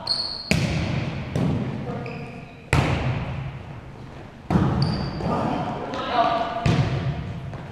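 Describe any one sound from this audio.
A volleyball is struck hard again and again, booming through a large echoing hall.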